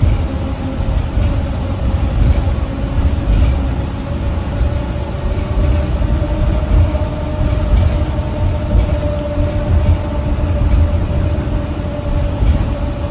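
Loose parts inside a bus rattle and clatter lightly.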